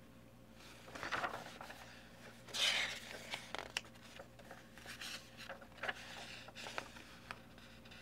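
Paper pages rustle and flip as they are turned by hand.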